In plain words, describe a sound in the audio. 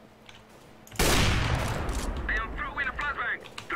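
A rifle scope clicks as it zooms in.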